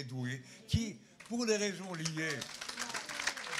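An elderly man speaks into a microphone in a calm voice.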